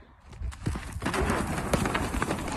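A horse's hooves thud and scuff on the ground.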